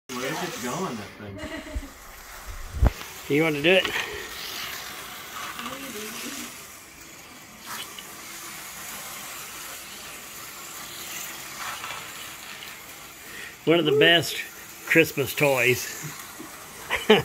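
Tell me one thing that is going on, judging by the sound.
A toy train whirs steadily along a plastic track.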